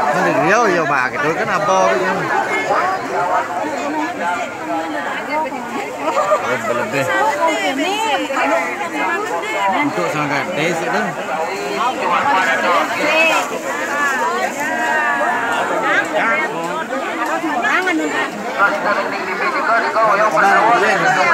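A crowd of men and women talks and calls out close by.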